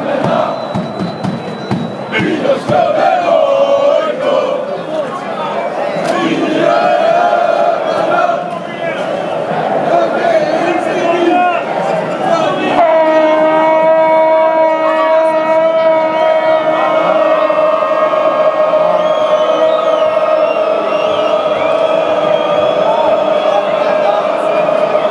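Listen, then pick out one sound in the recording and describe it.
A large stadium crowd sings and chants loudly all around.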